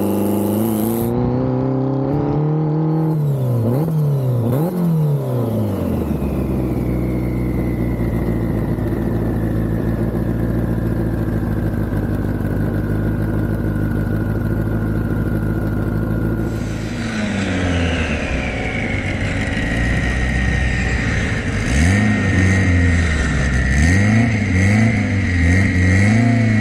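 A car engine revs up and down close by.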